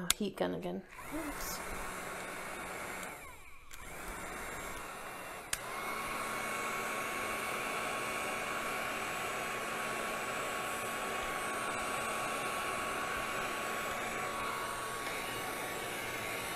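A heat gun blows with a steady, loud whoosh.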